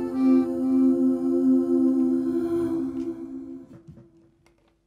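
An accordion plays a held chord that fades away.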